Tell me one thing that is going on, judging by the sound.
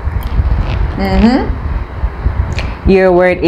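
A second young woman speaks briefly close to a microphone.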